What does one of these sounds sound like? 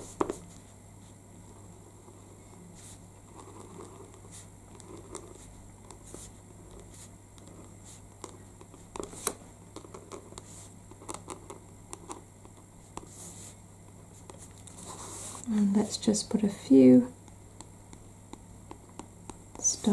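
A paint marker taps and scratches lightly on paper.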